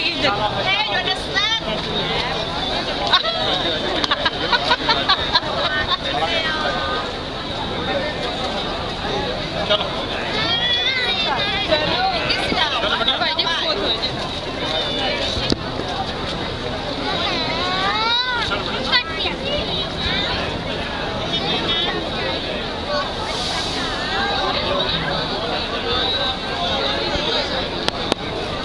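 A crowd chatters and calls out loudly outdoors.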